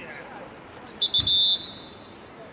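A referee blows a whistle in short sharp blasts.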